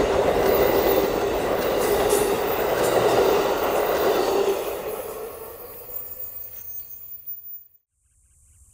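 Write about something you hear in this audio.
A passenger train rolls past close by and fades away.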